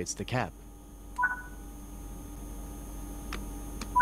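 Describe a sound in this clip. A lever clicks into place.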